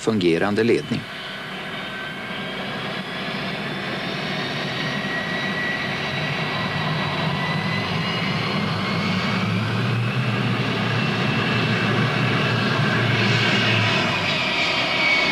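A jet engine whines steadily and slowly rises in pitch.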